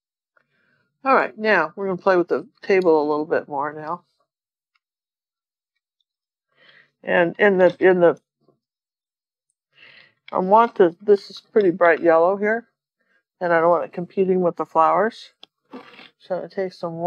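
A woman talks calmly and closely into a microphone.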